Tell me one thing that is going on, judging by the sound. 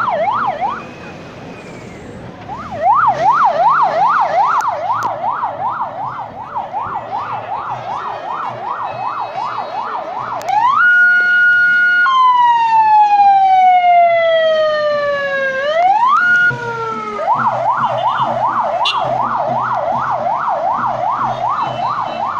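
A siren wails rapidly up and down.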